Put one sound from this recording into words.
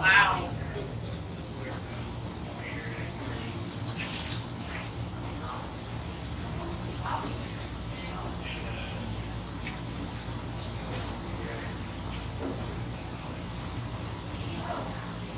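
A man chews and bites noisily into a sandwich close to a microphone.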